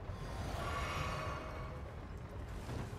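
A magic spell shimmers with a bright, ringing chime that fades away.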